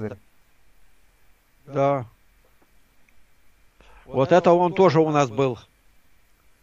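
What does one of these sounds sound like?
An elderly man speaks calmly through an online call, heard through a microphone.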